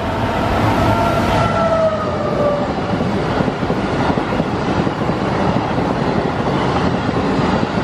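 A train's wheels clatter on the rails.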